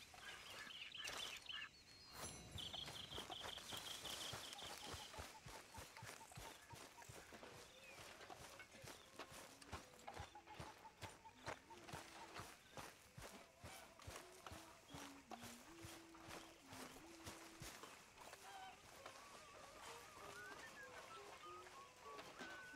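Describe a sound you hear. Footsteps tread steadily over grass and dirt.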